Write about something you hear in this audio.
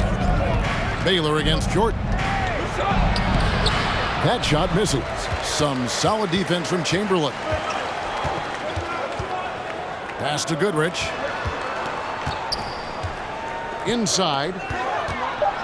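Basketball shoes squeak sharply on a hardwood floor.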